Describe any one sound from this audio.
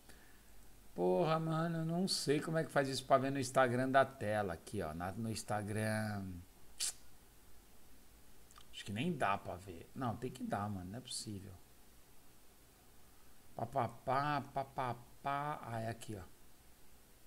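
A man talks calmly into a close microphone, in bursts with pauses.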